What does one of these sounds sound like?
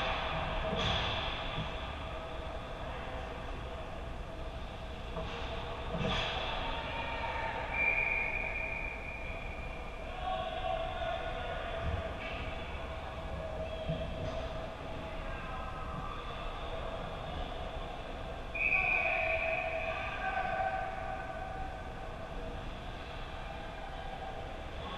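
Ice skates scrape and hiss on the ice in a large echoing rink.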